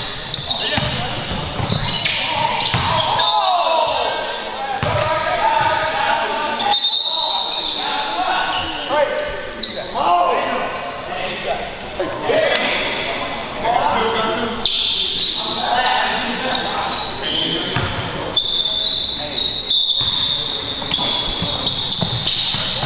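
Men call out and talk loudly across an echoing court.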